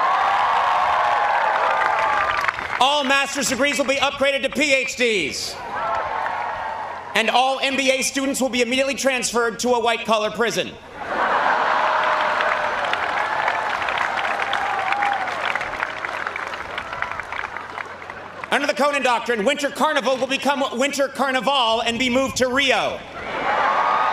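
A large crowd laughs and applauds.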